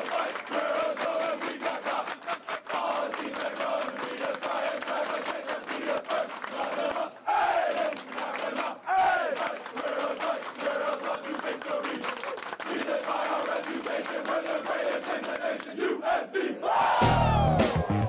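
Many hands clap in rhythm.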